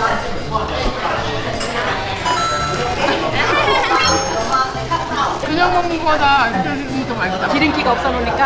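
An elderly woman talks excitedly close by.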